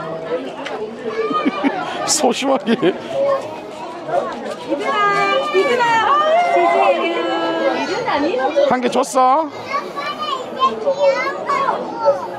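Small children babble and chatter close by.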